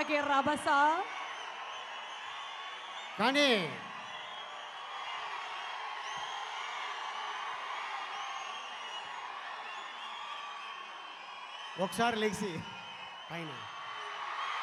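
A large crowd cheers and shouts in a big hall.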